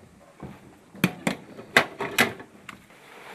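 Metal parts of a pistol click sharply.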